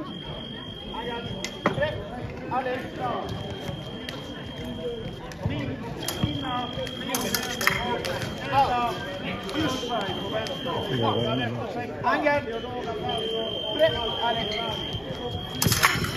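Blades clash and click as fencers fight.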